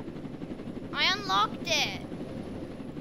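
A young boy speaks with animation close to a microphone.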